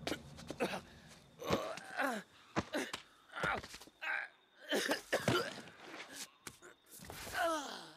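A man groans in pain up close.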